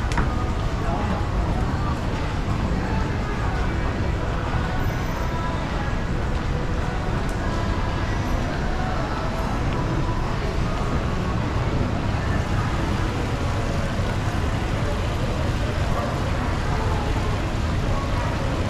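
An escalator hums steadily.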